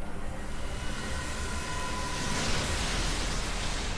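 Electricity crackles and sizzles with a bright magical shimmer.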